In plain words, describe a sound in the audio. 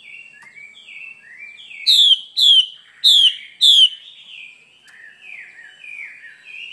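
A bird sings a string of sweet whistled notes close by.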